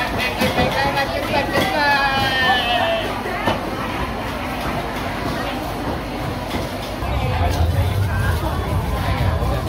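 A busy crowd chatters in a large echoing hall.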